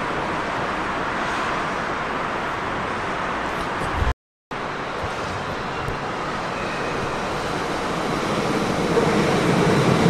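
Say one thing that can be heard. A train rumbles along the tracks, growing louder as it approaches.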